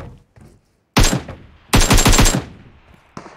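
An assault rifle fires in a video game.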